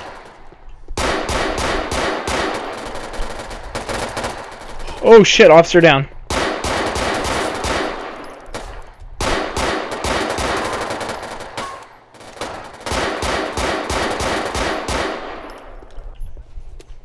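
A pistol fires rapid shots in bursts, with sharp echoing cracks.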